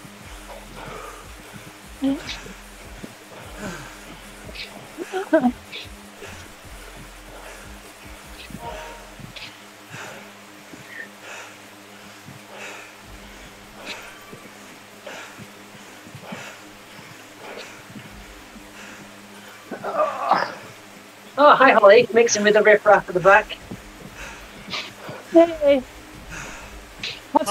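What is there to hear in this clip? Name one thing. A man speaks breathlessly into a close microphone, with animation.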